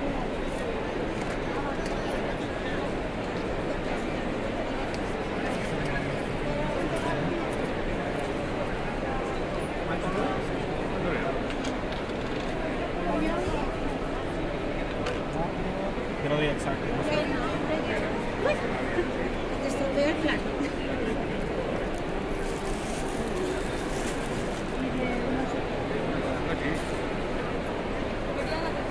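Many people chatter at once in a large, busy hall.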